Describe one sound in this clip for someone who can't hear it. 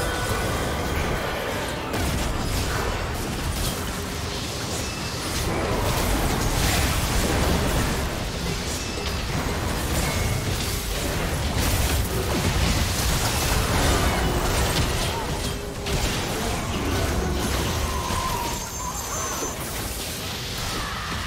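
Video game spell blasts and hits crackle and boom in a busy fight.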